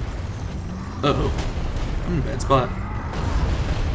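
A large creature growls.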